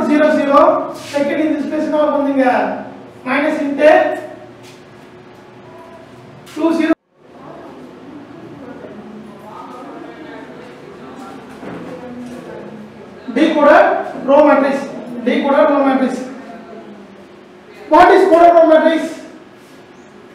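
A man speaks clearly into a nearby microphone, explaining in a calm teaching tone.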